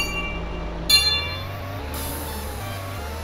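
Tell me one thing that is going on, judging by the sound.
Music starts playing.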